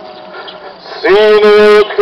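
A group of children start singing loudly together.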